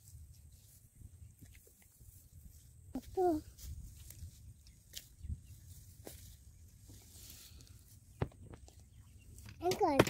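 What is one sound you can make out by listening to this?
A woman pulls up grass with a soft rustle.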